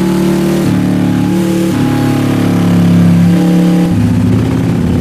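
A motorcycle engine idles with a deep, throbbing rumble.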